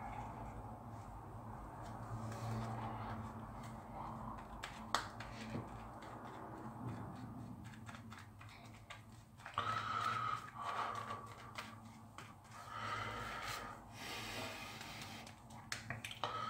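A shaving brush swishes lather over a stubbled face.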